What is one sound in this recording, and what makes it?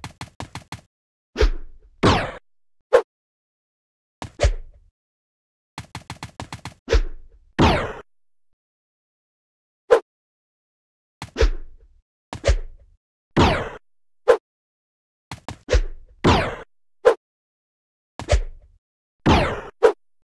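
Quick game jump sound effects play again and again.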